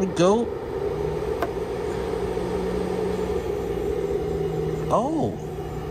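An electronic device hums steadily.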